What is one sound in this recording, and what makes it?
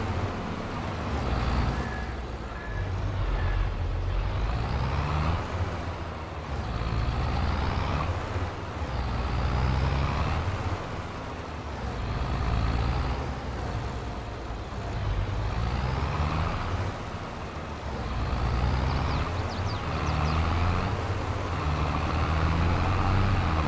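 A tractor engine rumbles steadily as the tractor drives along.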